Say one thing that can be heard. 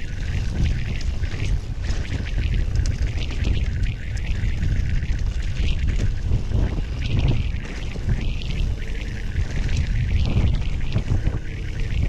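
Bike tyres crunch and rattle over a rough gravel track.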